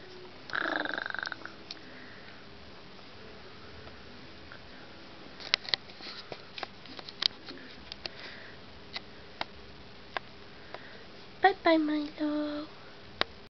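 A young girl speaks briefly nearby.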